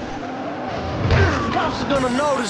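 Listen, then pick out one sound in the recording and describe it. A truck crashes into something with a loud thud.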